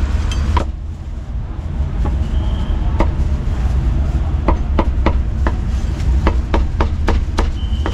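A cleaver chops sharply on a wooden board.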